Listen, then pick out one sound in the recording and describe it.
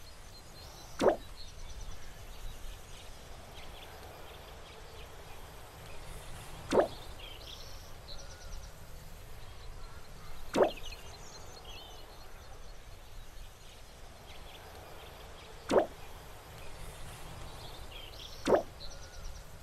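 A short sharp click sounds every few seconds.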